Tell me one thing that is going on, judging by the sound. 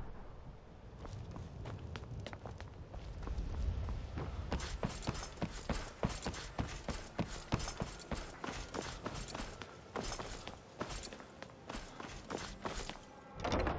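Footsteps thud steadily on wooden planks and stone.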